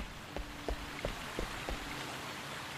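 Footsteps tread on stone steps.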